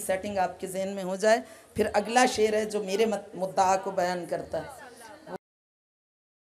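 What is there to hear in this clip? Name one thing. A woman speaks emotionally into a microphone, her voice breaking as she weeps.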